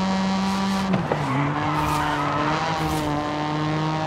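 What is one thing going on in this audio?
Tyres screech briefly as a car drifts through a bend.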